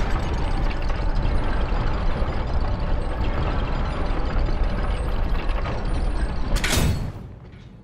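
A large wooden wheel creaks and rumbles as it turns.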